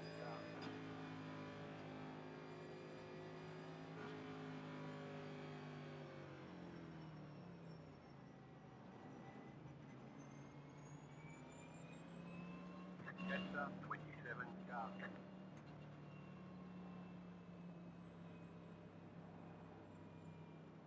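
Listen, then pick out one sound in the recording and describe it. A race car engine drones steadily, its pitch dropping as the car slows.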